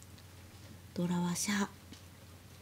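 A young woman speaks briefly and calmly nearby.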